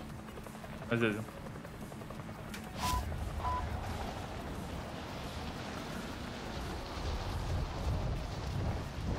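Helicopter rotors drone steadily.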